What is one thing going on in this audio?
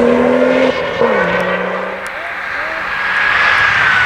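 A rally car engine roars as it speeds away into the distance.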